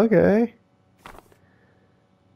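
A page of paper flips over.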